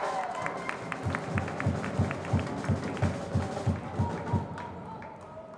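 A crowd claps in a steady rhythm.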